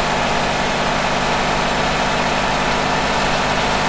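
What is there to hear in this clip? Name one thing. A tanker truck rushes past close by.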